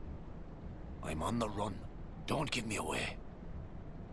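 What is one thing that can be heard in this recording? A man answers in a pleading voice.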